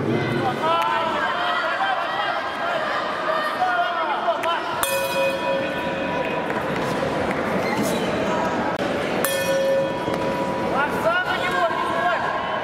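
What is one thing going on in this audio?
Boxing gloves thump against the fighters in a large echoing hall.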